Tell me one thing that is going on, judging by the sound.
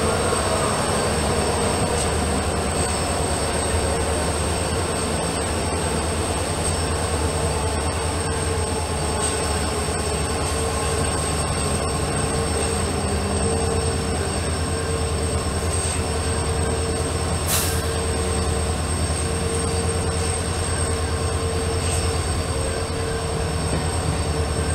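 A diesel train engine rumbles steadily close by.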